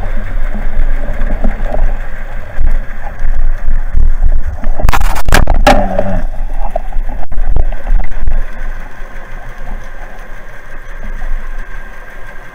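Water rumbles and swishes steadily around a diver underwater.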